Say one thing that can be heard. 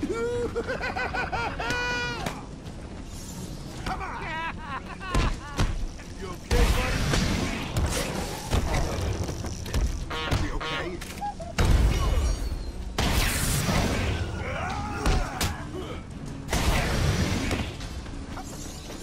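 Punches and kicks thud heavily in a brawl.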